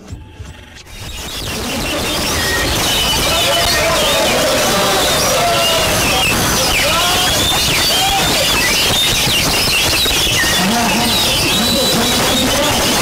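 A caged songbird sings loud, varied whistling phrases close by.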